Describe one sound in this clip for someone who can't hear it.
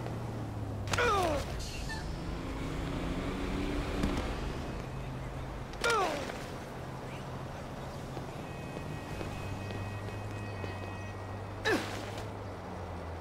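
A man grunts in pain as he falls.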